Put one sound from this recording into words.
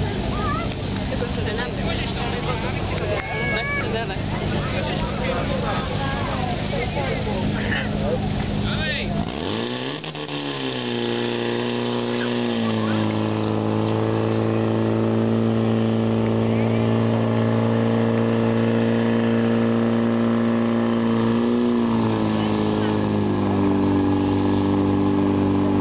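A pump engine drones steadily outdoors.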